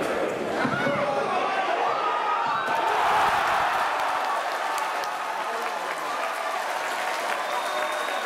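A stadium crowd cheers loudly.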